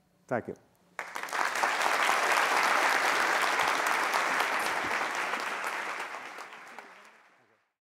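An audience applauds in a large hall and slowly fades.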